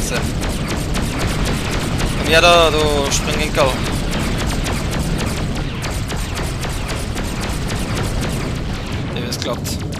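A spacecraft engine rumbles steadily.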